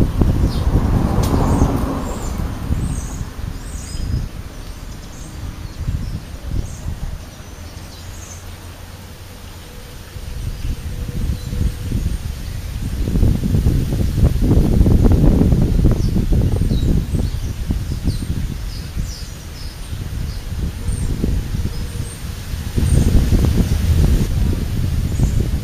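Wind buffets the microphone outdoors in uneven gusts.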